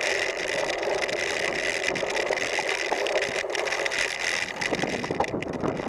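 Bicycle tyres rumble and rattle over bumpy grass.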